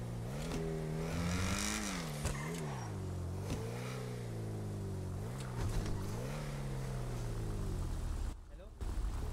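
A car engine revs loudly, rising and falling in pitch.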